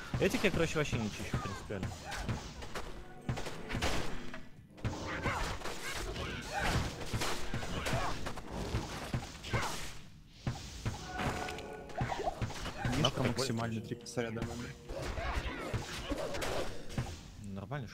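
Fire spells crackle and burst in a video game battle.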